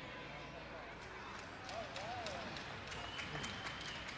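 Ice skate blades scrape across the ice.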